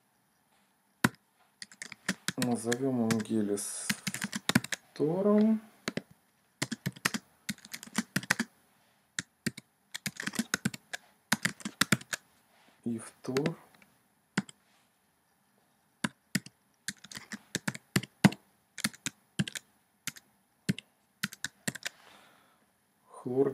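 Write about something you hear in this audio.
Keys clack on a keyboard in quick bursts.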